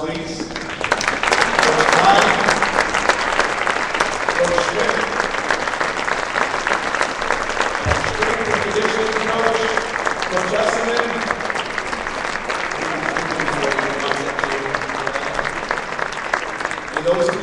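A large crowd claps and cheers in an echoing hall.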